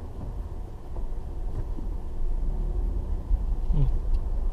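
A car engine grows louder as the car pulls away.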